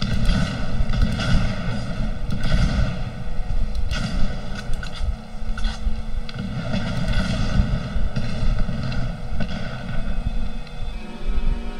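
A young man talks into a microphone with animation.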